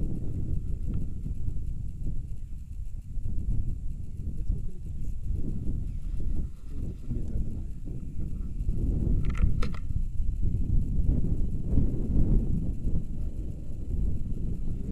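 Wind buffets a microphone outdoors with a steady low rumble.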